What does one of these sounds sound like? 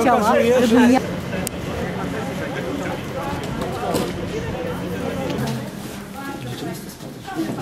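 A crowd of people talks outdoors at a distance.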